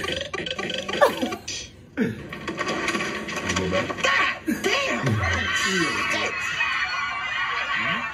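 Two young men talk and laugh excitedly close to a microphone.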